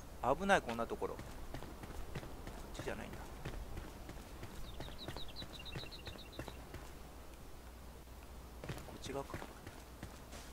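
Bare footsteps patter quickly on stone.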